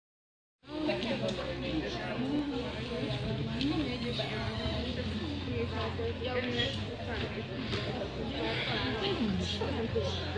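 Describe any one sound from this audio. Voices murmur and chatter in a large echoing hall.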